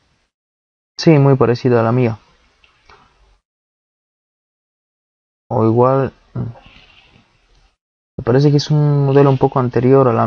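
A young man talks calmly and close into a microphone.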